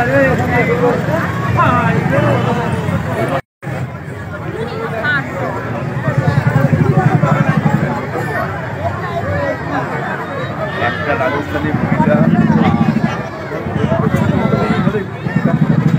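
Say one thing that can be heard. A large outdoor crowd chatters loudly all around.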